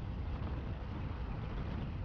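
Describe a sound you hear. A van drives past close by.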